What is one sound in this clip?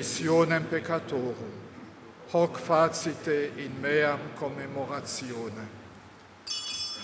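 An elderly man chants through a microphone.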